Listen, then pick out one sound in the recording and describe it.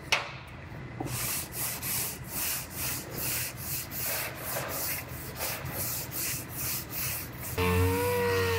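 A sanding block rubs back and forth on a car panel.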